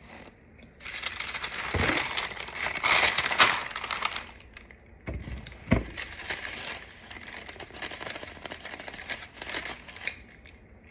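A sheet of parchment paper crinkles and rustles as it is lifted and folded.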